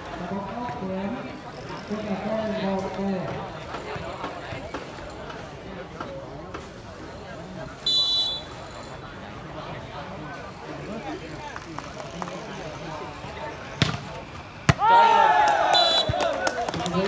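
Young men call out to each other across an open outdoor court.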